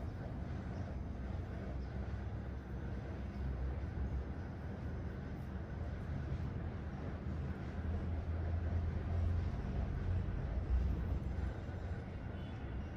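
Fingers rub and rustle through hair on a scalp.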